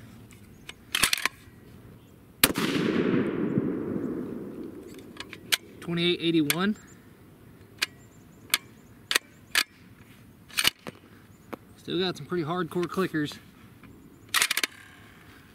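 A rifle bolt clicks and clacks as it is worked.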